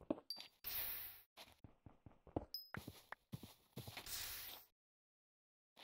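Stone blocks crunch and crack as they are broken.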